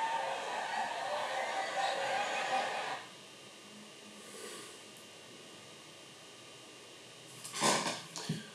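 A film projector whirs steadily.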